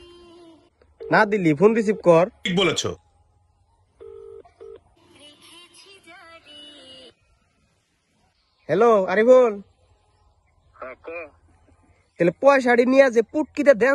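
A young man sings with feeling, close by.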